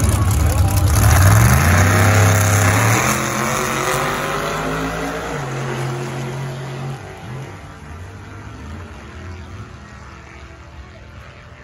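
A truck engine revs up loudly and roars away, fading into the distance.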